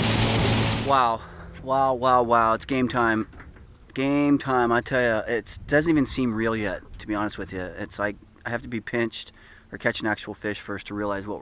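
A man talks animatedly close by.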